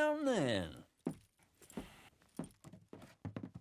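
Boots thud on a wooden floor.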